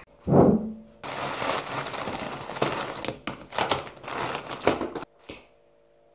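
A plastic bag rustles and crinkles loudly.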